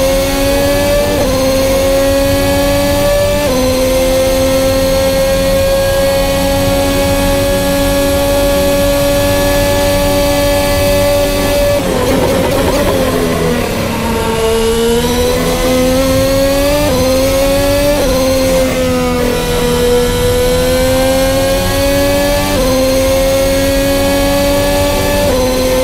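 A racing car engine screams at high revs, with sharp pitch drops at each gear change.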